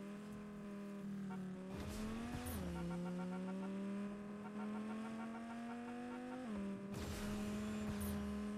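A car engine hums steadily and rises in pitch as it speeds up, dropping as it shifts gear.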